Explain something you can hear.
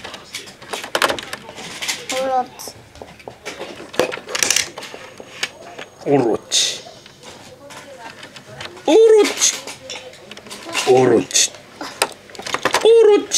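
A small plastic toy car clicks and rattles as it is pressed onto a plastic track.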